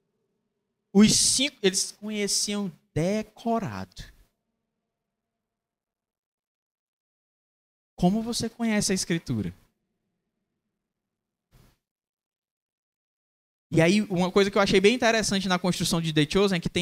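A man speaks with animation into a microphone, with pauses between phrases.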